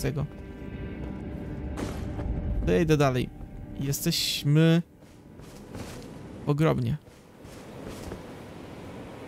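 Footsteps crunch softly over dirt and grass.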